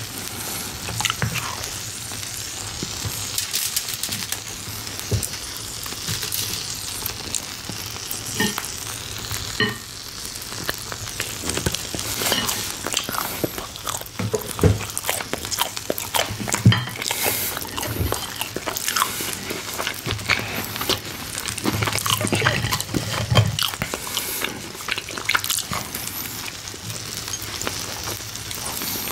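Meat sizzles steadily on a hot stone grill.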